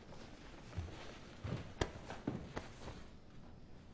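Footsteps hurry across a wooden floor.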